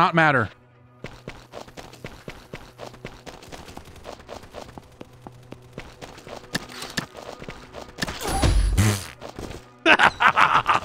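Footsteps patter quickly on hard ground.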